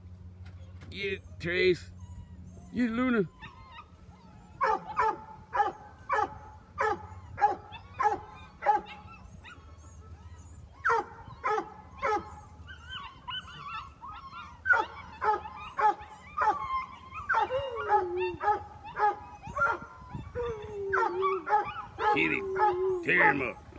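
Puppies yip and whine close by, over and over.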